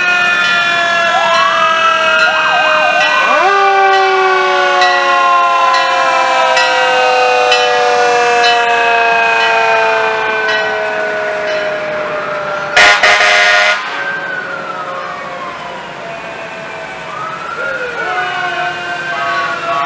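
Old fire engines rumble slowly past.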